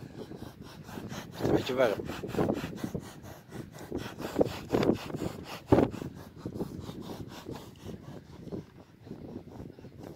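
A horse breathes and snorts close by.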